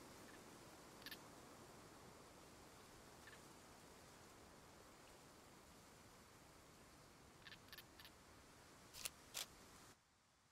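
Plants rustle and snap as they are picked by hand.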